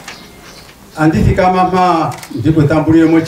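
An elderly man speaks steadily through a microphone.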